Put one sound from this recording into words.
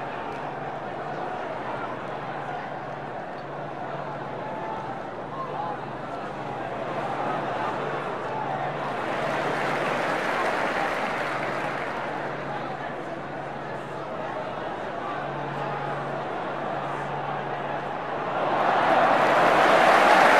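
Men shout and call to each other across an outdoor pitch.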